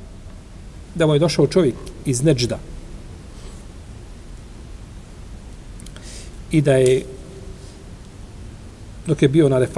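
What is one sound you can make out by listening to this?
A middle-aged man reads aloud slowly into a microphone, with long pauses.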